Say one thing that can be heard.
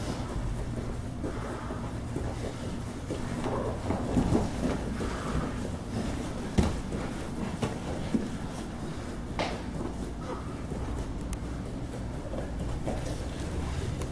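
Bodies thud and shuffle on a padded mat.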